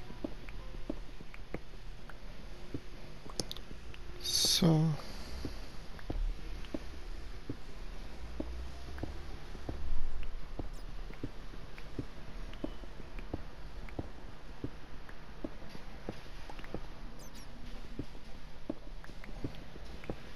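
A pickaxe taps rapidly on stone blocks.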